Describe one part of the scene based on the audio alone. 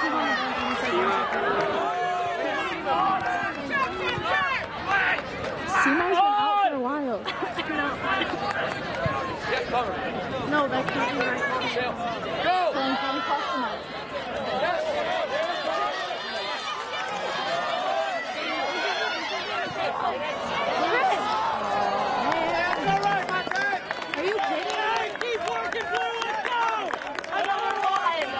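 Several young people chatter and call out close by, outdoors.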